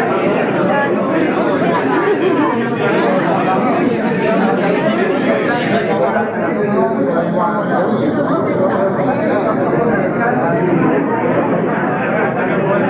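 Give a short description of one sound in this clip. A crowd of men and women chatter loudly all around, close by.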